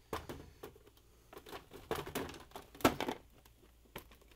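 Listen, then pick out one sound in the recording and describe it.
A plastic ice bin clicks and rattles as hands lift it out.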